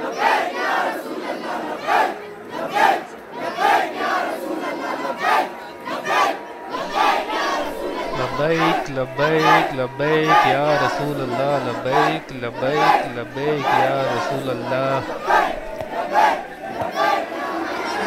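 A large crowd of men chants loudly in rhythm outdoors.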